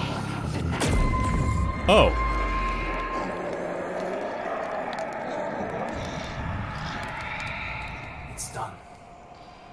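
A magical shimmering whoosh swells and then fades away.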